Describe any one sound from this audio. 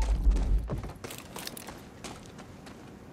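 Footsteps scuff over debris outdoors.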